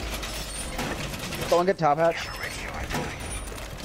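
A heavy metal panel clanks and locks into place against a wall.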